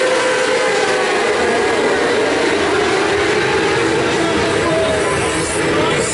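Motorcycle engines whine and fade as they race off into the distance.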